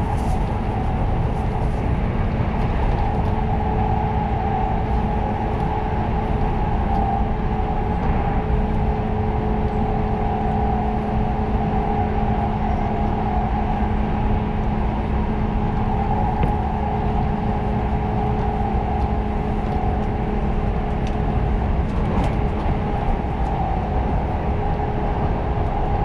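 A train's motor hums with a steady drone.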